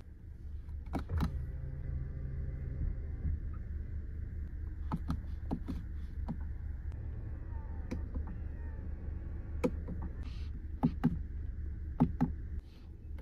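Car window switches click sharply.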